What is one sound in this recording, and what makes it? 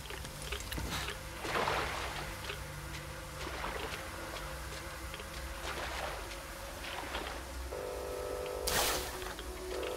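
Footsteps crunch over loose debris.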